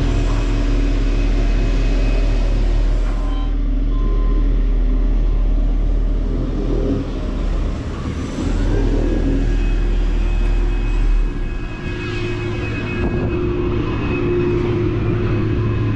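A large diesel truck engine idles with a steady low rumble.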